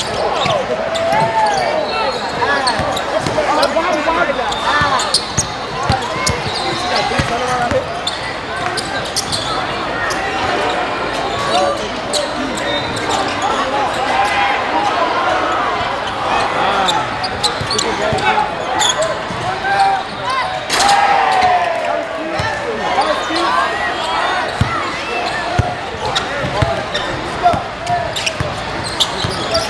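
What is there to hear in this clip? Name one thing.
A large crowd cheers and shouts loudly in an echoing gym.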